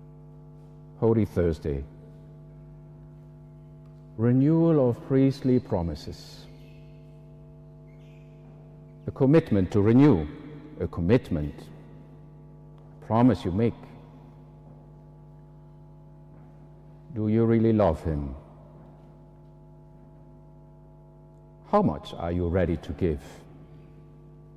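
An older man chants short phrases into a microphone, heard over loudspeakers in a large echoing hall.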